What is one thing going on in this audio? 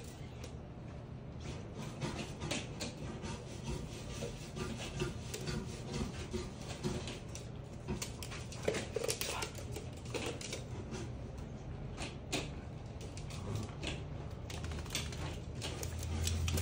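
Dogs' claws click and scrabble on a hard floor as they play.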